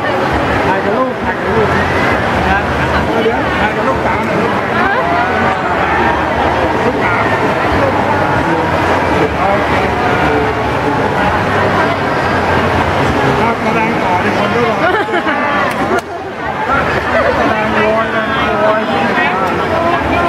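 A crowd of people chatter loudly all around in a large echoing hall.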